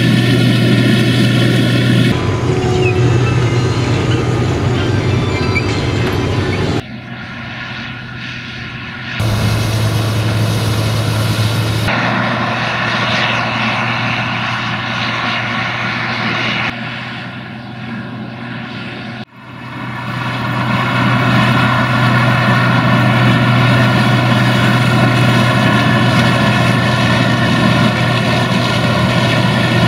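A combine harvester's engine drones loudly and steadily.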